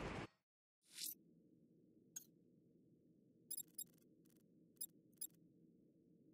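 Game menu sounds click and chime.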